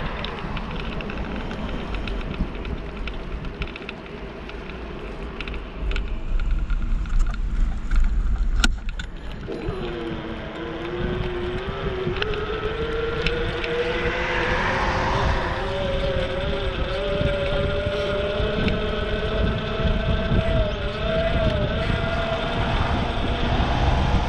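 Wind buffets the microphone while riding outdoors.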